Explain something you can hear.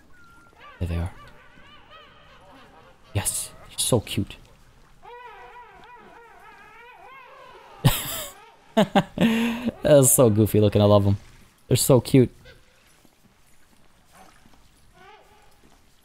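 Penguins chirp and squawk nearby.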